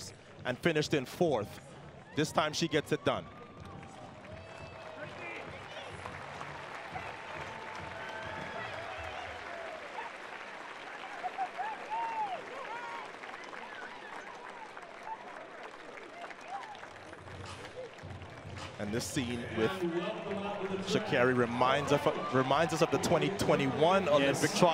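A crowd claps and cheers in a large stadium.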